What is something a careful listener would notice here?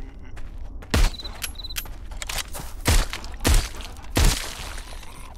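A pistol fires several loud, booming shots.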